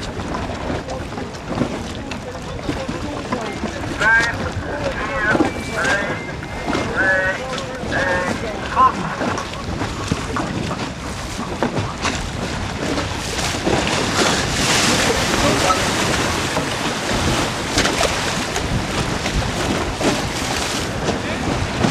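Water splashes against boat hulls.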